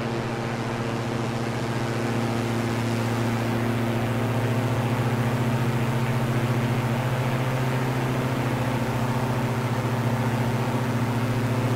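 A twin propeller engine drones steadily and loudly.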